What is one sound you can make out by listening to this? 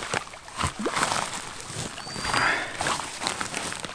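A man sits down heavily on crackling ground cover.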